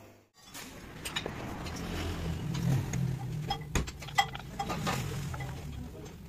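Metal parts clink and clack against each other.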